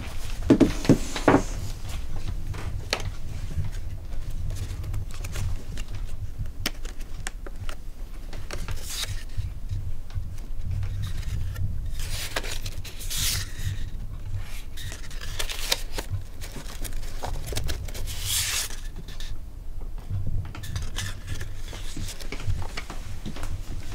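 Cards rustle and click as fingers flip through a box of cards.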